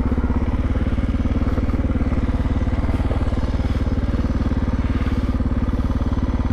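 A motorbike engine idles close by with a steady, fast throb.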